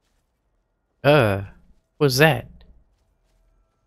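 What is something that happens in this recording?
A man speaks briefly and loudly, close to a microphone.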